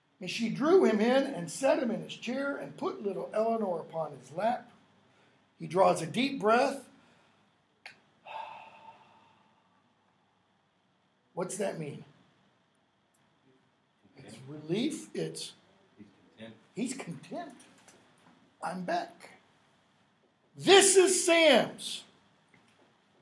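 An older man talks with animation, close by, in short bursts with pauses.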